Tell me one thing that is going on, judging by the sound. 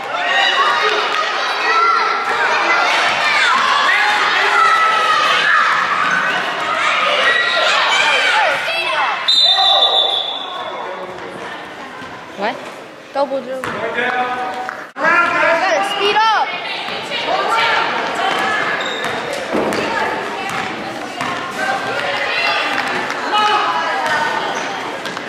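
Spectators shout and cheer in a large, echoing hall.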